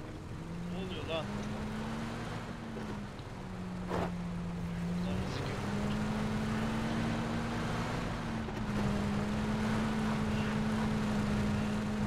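Tires rumble over dirt.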